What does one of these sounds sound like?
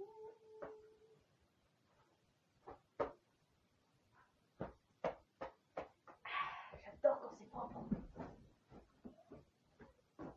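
Clothes rustle and thump as a young woman handles them close by.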